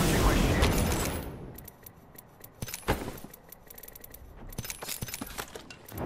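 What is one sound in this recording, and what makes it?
Short video game menu clicks sound as items are picked up.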